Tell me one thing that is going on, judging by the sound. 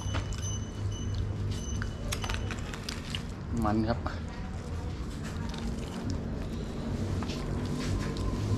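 A man tears cooked chicken apart with wet, squelching sounds.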